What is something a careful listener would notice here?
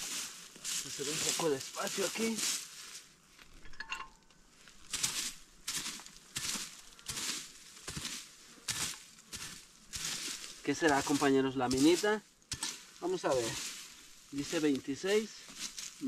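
A man talks calmly, close by.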